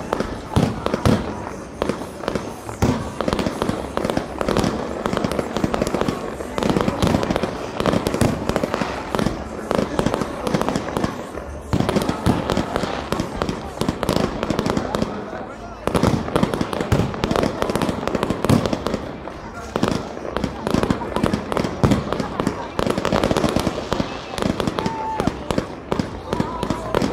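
Fireworks crackle and pop rapidly overhead.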